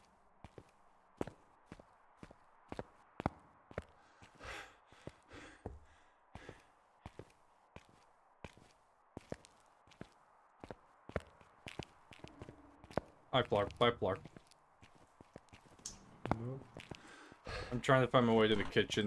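Footsteps crunch slowly over debris on a hard floor.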